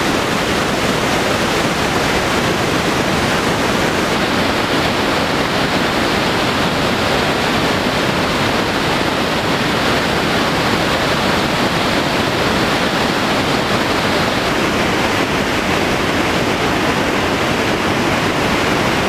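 A huge waterfall roars loudly and steadily.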